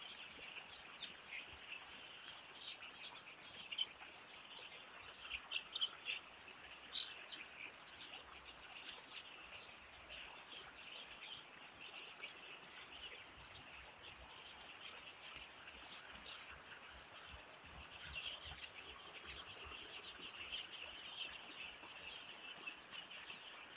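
Chicks peep and chirp nearby.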